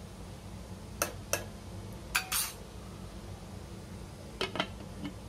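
A metal lid clanks onto a pot.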